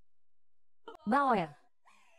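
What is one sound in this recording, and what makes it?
A young woman cries out sharply nearby.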